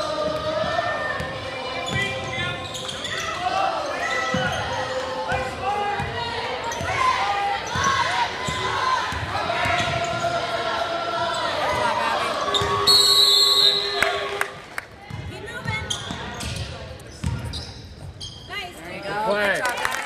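A basketball thuds as it bounces on the floor.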